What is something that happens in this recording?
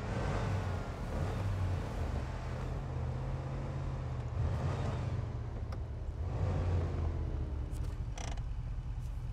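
A truck engine rumbles and revs up as it drives.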